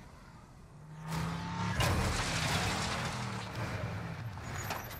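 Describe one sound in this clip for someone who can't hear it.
A truck engine roars as the truck drives hard over rough ground.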